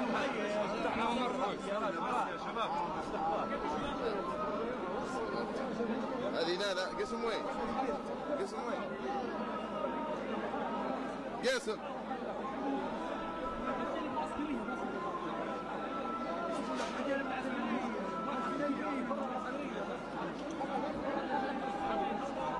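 A large crowd of men talks and shouts all around.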